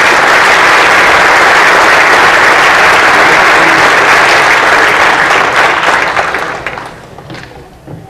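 An audience applauds loudly in a large hall, then the clapping dies away.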